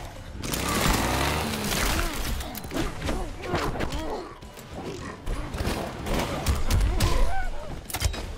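A chainsaw revs and grinds.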